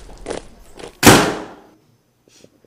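A door swings shut with a loud thud.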